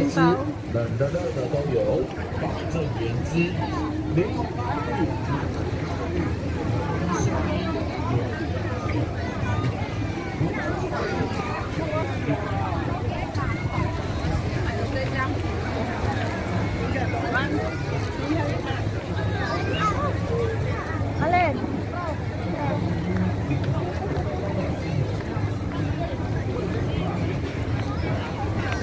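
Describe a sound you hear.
A crowd of many people chatters outdoors all around.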